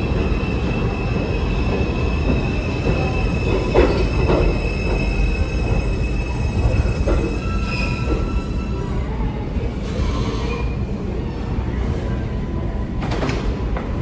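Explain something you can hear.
A subway train rumbles into the station and slows to a stop.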